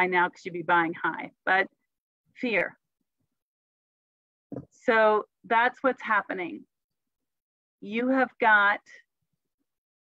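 A middle-aged woman speaks calmly through an online call, in short phrases with pauses.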